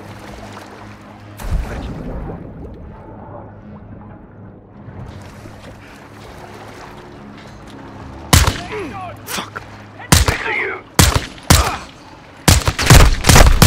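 Water sloshes and splashes around a swimmer.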